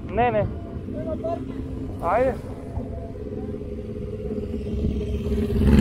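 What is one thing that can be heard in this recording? Other motorcycles roar past close by.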